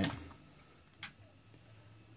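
A switch clicks sharply.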